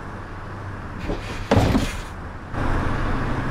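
A bus's folding doors bang shut.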